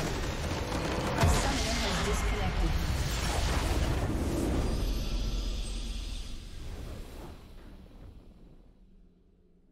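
A large magical explosion booms and then fades away.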